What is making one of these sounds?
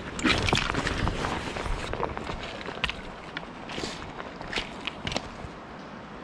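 Pebbles crunch underfoot.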